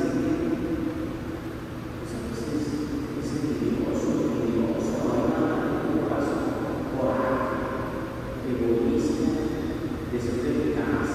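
A man speaks steadily through a microphone, echoing in a large hall.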